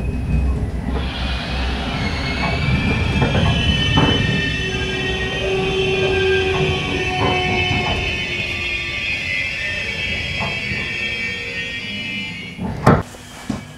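Train brakes squeal with a high, steady whine.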